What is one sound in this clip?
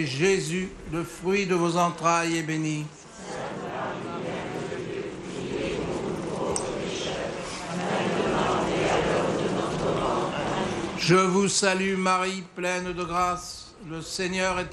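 A crowd sings a slow hymn outdoors.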